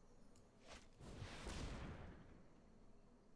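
A magical whoosh sweeps past with a bright shimmer.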